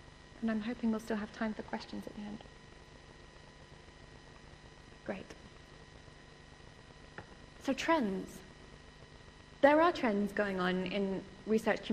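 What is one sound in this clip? A woman speaks calmly through a microphone in a room, with pauses between phrases.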